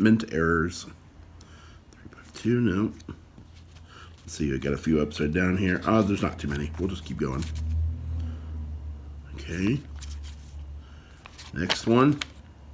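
Paper bills rustle and flick as a hand counts them.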